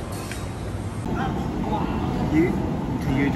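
Diners chatter in the background.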